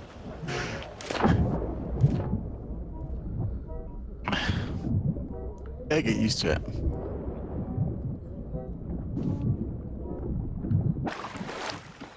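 Water rumbles deep and muffled underwater.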